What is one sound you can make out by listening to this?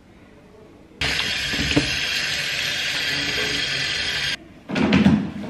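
Tap water splashes steadily into a metal sink.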